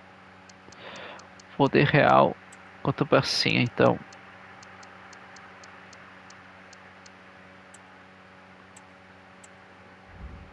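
Soft menu clicks tick quickly as selections change.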